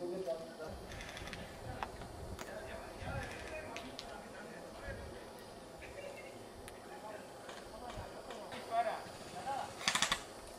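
Guns pop in short bursts outdoors.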